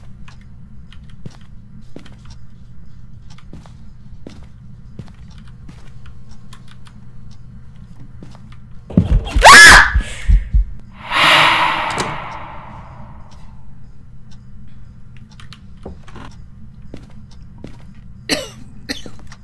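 Soft footsteps tap on a hard floor.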